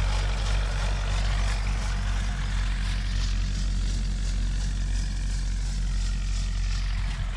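Wind rumbles steadily across a microphone outdoors.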